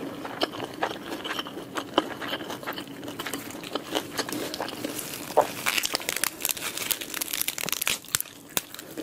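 Fish skin crackles as fingers pick at a grilled fish.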